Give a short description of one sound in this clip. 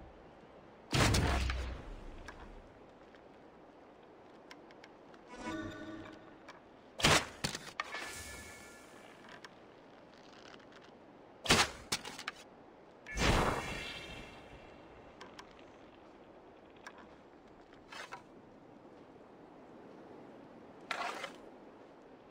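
Arrows whoosh as a bowstring is loosed.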